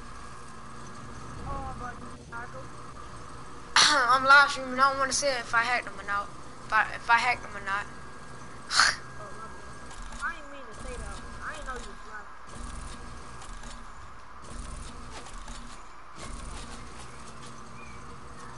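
A zipline pulley whirs steadily as a rider slides along a cable.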